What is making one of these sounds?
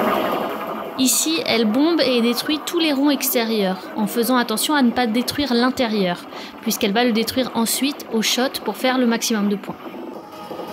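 A young woman speaks, commenting.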